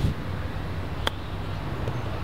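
A golf club strikes a ball with a crisp click.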